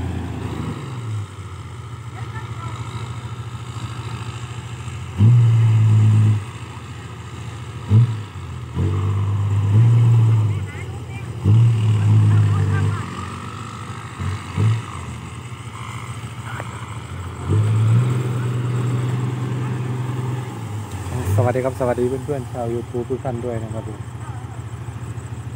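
A truck engine rumbles nearby, revving in short bursts.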